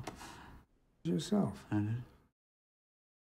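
A man speaks softly close by.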